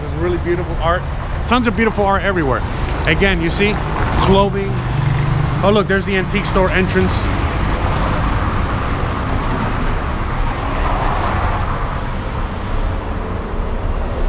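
Wind rumbles steadily outdoors.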